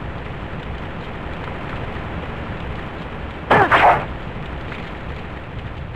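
A sword slashes and strikes with a sharp hit.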